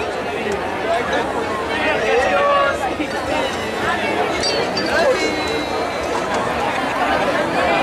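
Music plays loudly over loudspeakers in a large open space.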